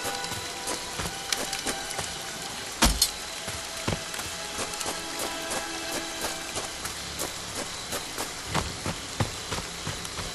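Footsteps crunch on the ground.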